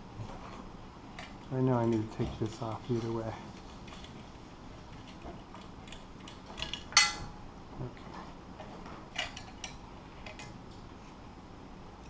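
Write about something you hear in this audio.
A metal bracket clinks and rattles against a cable.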